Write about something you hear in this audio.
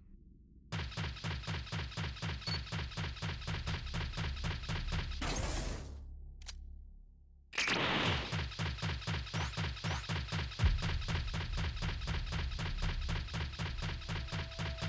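Rapid footsteps thud on hard ground.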